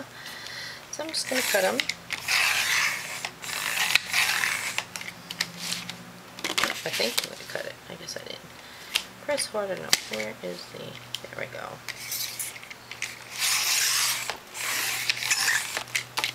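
A paper trimmer blade slides along, cutting card with a scraping swish.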